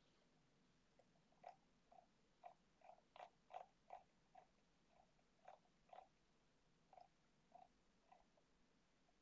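A computer mouse clicks now and then.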